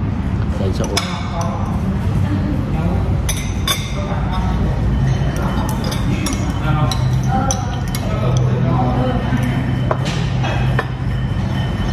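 A fork and spoon clink against a plate.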